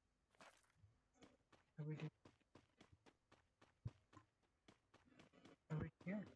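Footsteps run quickly over dirt.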